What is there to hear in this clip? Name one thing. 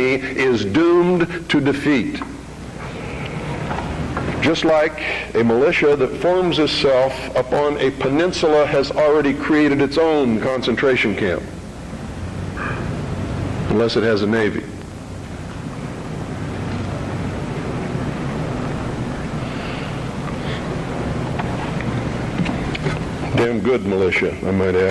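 A middle-aged man speaks into a microphone, calmly and with pauses.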